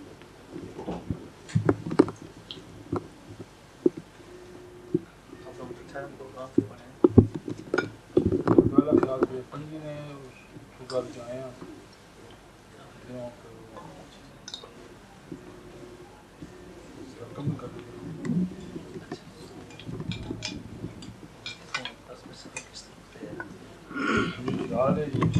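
Dishes and cutlery clink.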